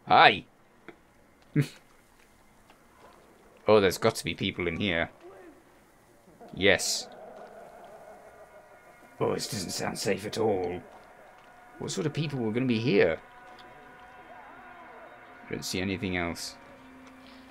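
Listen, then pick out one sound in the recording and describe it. A young man talks in short bursts into a close microphone.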